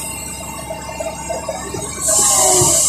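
Soil and stones rattle from an excavator bucket.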